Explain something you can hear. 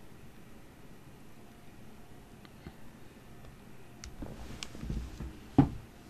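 Small footsteps creak softly on wooden floorboards.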